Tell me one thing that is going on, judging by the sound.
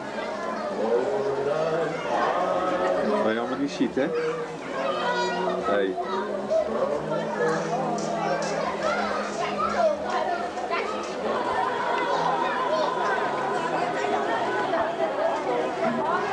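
Many people chatter in a busy outdoor crowd.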